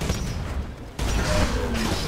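An explosion booms close by.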